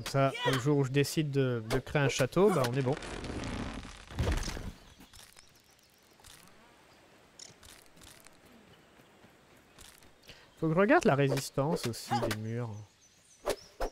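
An axe chops into a thick mushroom stalk with dull thuds.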